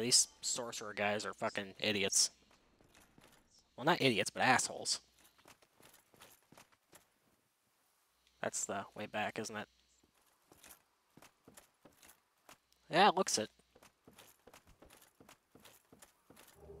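Armoured footsteps clank on stone and wooden boards.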